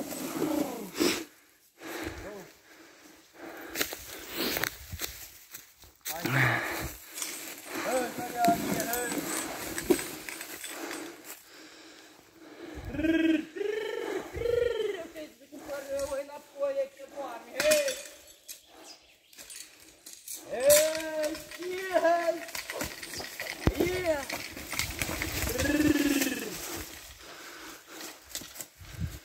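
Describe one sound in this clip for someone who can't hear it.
Hooves thud and rustle through dry leaves.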